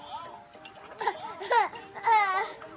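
A baby squeals and babbles loudly close by.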